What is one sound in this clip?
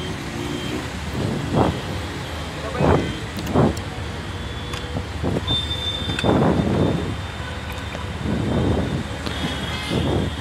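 Motorbike engines idle and rumble nearby in city traffic.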